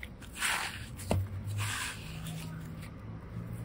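Sticky slime squelches and crackles as hands stretch and squeeze it.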